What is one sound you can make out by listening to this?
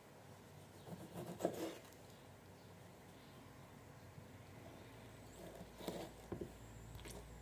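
A knife slices through a soft tomato.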